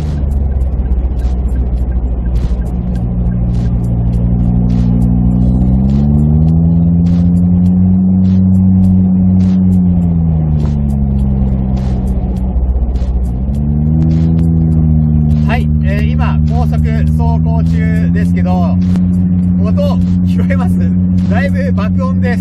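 A car engine hums and revs as the car drives fast.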